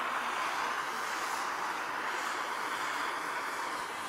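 A gas torch hisses.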